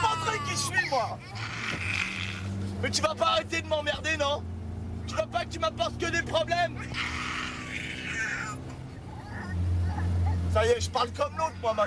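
A baby whimpers and cries close by.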